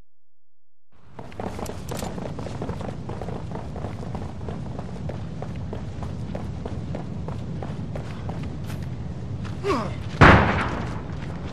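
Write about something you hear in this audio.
Heavy boots thud on hard ground as a soldier runs.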